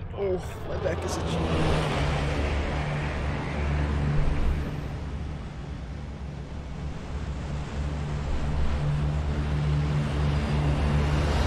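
A large propeller plane drones loudly with a deep, steady roar.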